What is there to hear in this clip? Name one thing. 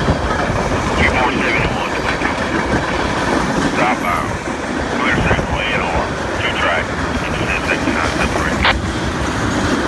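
Steel train wheels squeal against the rails.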